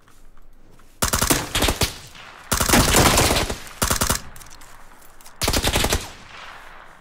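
Rapid bursts of automatic gunfire ring out close by.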